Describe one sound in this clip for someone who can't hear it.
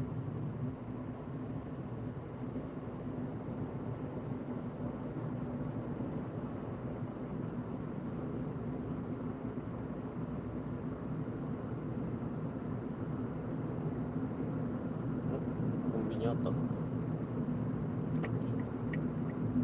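Tyres rumble on the road surface.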